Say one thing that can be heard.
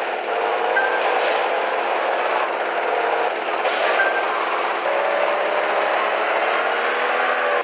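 A car engine roars and revs steadily.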